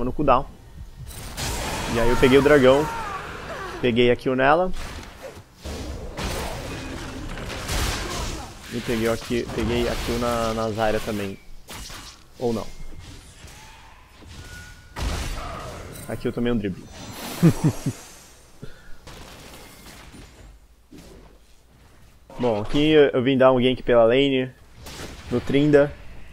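A man talks with animation into a microphone, close by.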